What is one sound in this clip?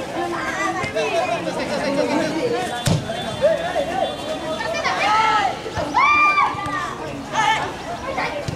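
Young men shout and call to each other across an open field outdoors.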